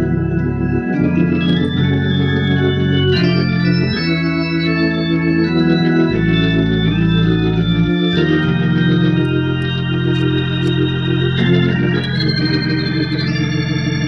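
An organ plays sustained chords with a moving bass line.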